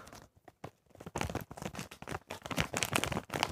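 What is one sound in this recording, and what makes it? Something crinkles and rustles in a boy's hands.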